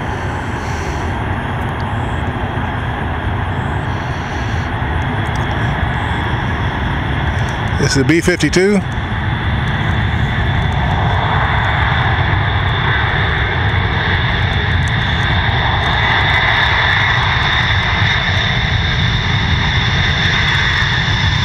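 Jet engines roar steadily as a large plane rolls down a runway.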